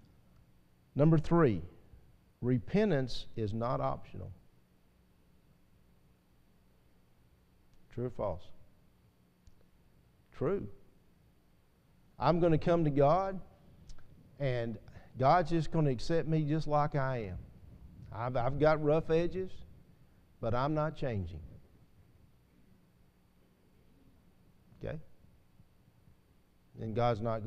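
A middle-aged man speaks through a microphone with pauses, in a calm, earnest tone.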